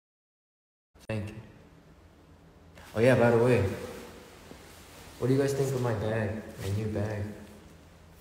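A young man speaks casually and close to a phone microphone.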